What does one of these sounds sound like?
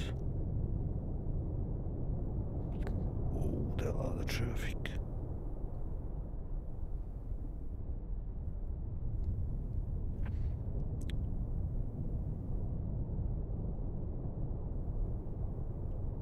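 A deep underwater rumble and propeller churn drone steadily.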